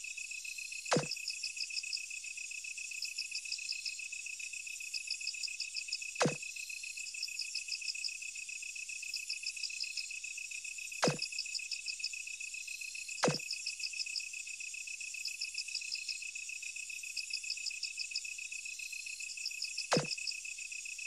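A short sharp chime sounds now and then as dialogue advances.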